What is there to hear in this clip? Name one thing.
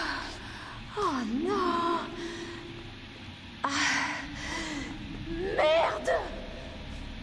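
A young woman speaks nervously up close.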